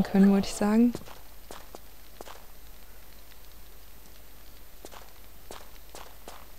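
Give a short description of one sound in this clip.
Footsteps tap steadily on a stone floor.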